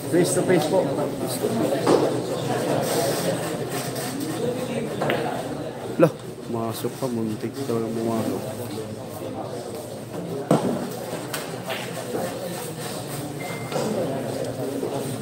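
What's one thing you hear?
A crowd of young men chatter nearby.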